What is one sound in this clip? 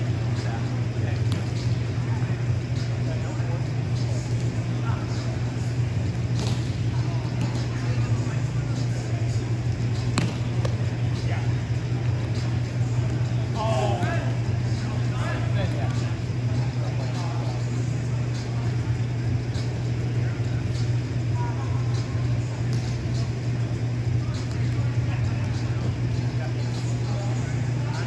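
Young men call out and talk across a large echoing hall.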